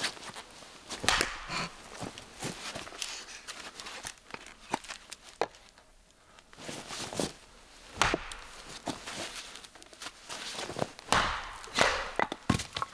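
A hatchet splits wood with sharp knocks.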